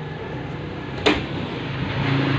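A car bonnet latch clunks as the bonnet opens.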